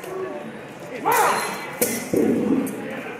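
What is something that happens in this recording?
Wooden swords clack against a shield.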